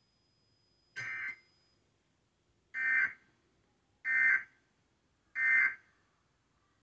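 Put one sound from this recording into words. A television sounds a series of short, loud alert beeps.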